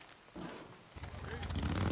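A motorcycle engine starts and revs.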